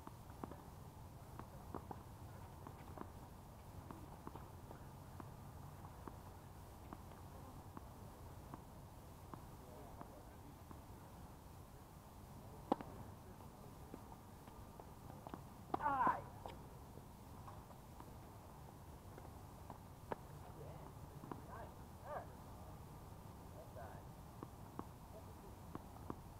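A tennis ball is struck with a racket, with sharp pops now and then.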